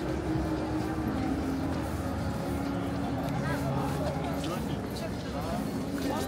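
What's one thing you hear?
Footsteps shuffle on paving stones.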